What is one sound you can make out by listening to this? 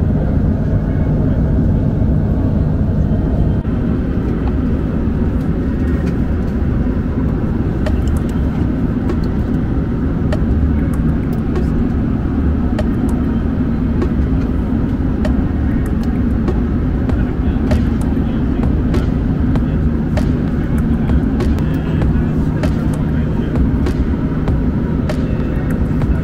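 A jet engine roars steadily in flight.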